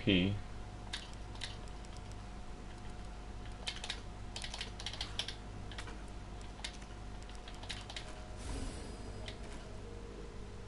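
Short soft clicks tick now and then as menu items are chosen.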